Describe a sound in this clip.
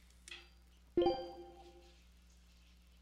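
A bright electronic menu chime rings once.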